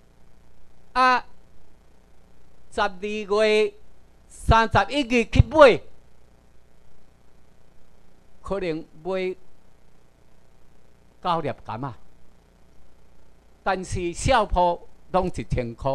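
A man speaks through a microphone, in bursts with pauses.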